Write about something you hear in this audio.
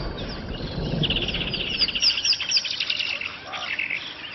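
A small dinosaur shrieks in rapid high chirps.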